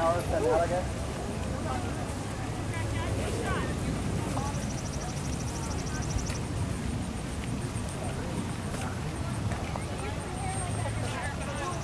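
A horse's hooves thud softly on sand at a trot.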